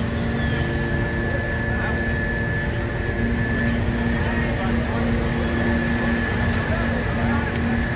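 Fire truck engines idle with a steady low rumble close by.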